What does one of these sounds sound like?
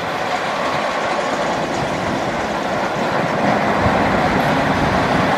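A vintage diesel railcar pulls away, its engine rumbling under load.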